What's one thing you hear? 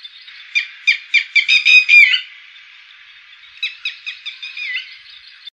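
A bird gives a series of sharp, repeated calls that quicken and then pause.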